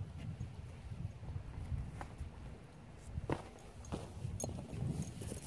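Footsteps scrape and crunch on rock.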